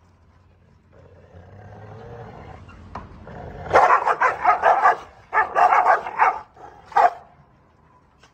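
A dog snarls and growls.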